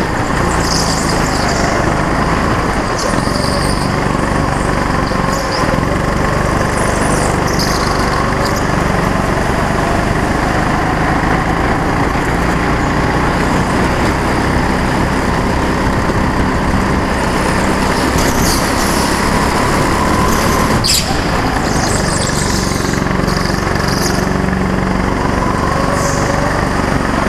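A go-kart engine buzzes loudly and steadily, rising and falling in pitch.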